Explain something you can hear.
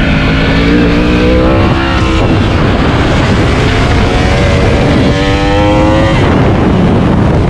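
A motorcycle engine revs hard, rising and dropping in pitch with gear changes.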